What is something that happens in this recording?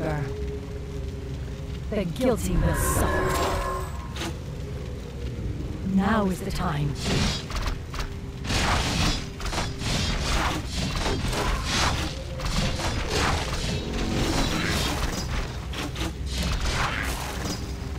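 Fantasy battle sound effects clash and crackle with bursts of magic.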